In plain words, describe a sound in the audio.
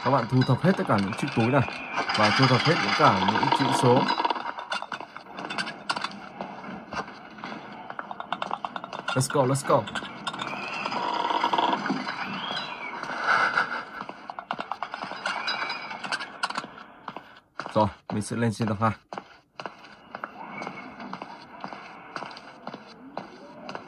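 Video game sound effects play from a tablet's speaker.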